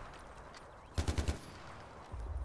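A rifle fires a short, rapid burst.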